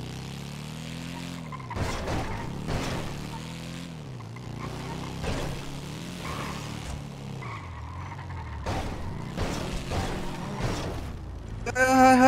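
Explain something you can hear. A motorcycle engine hums and revs up and down as it rides.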